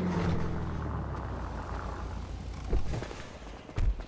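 A car door opens with a thud.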